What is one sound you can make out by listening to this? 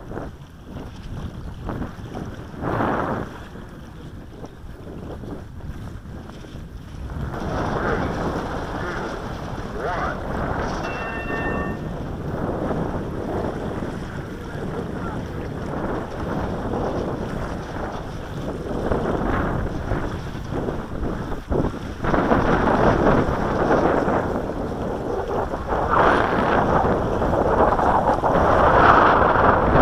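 Strong wind gusts roar across the microphone outdoors.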